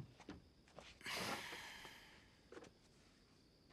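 A metal folding chair creaks and scrapes as a person sits down.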